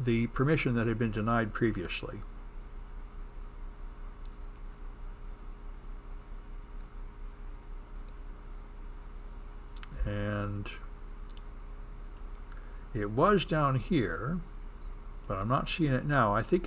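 A man speaks calmly into a close microphone, with pauses.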